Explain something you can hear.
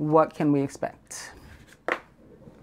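Playing cards rustle and slide as a hand handles them.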